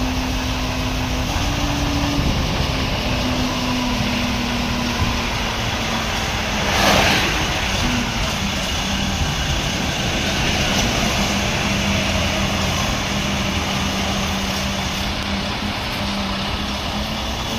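A diesel crane truck's engine runs with a low, steady hum.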